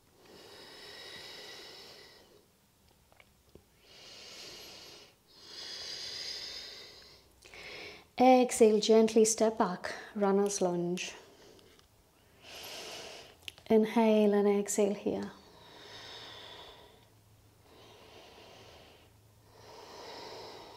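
A woman breathes in and out slowly and deeply.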